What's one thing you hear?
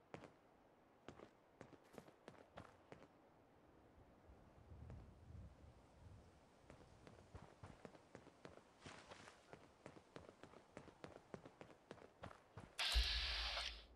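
Footsteps crunch steadily on gravel and dirt.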